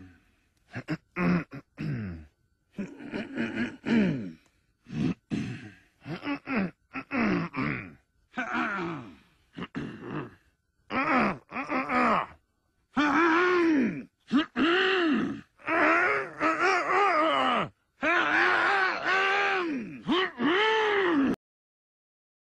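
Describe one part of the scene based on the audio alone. Elderly men clear their throats and hum in turn, close by.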